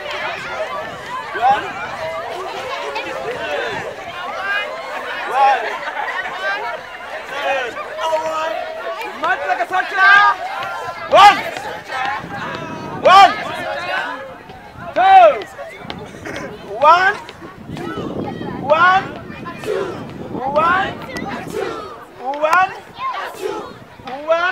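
A crowd of children shouts and cheers outdoors.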